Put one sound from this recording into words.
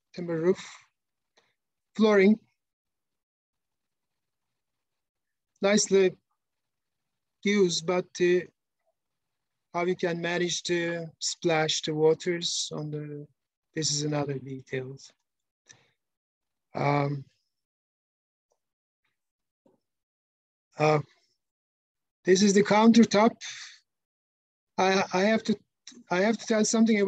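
A man speaks calmly in bursts over an online call.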